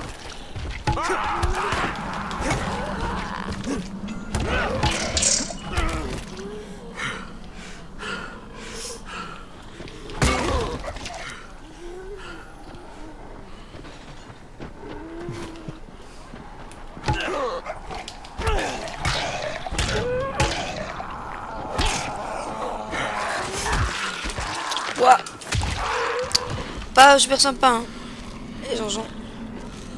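Zombies growl and groan close by.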